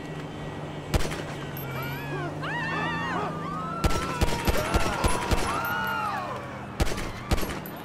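Gunshots fire in sharp, loud bursts.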